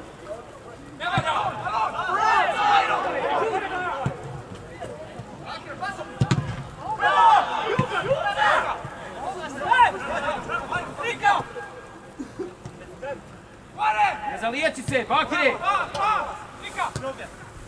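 Young players shout to each other across an open pitch outdoors.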